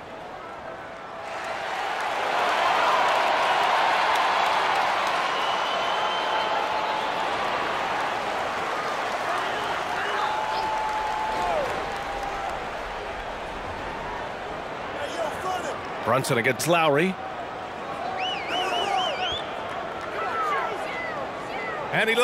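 A large crowd roars and cheers in an echoing arena.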